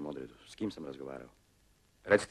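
A man speaks sternly and close by.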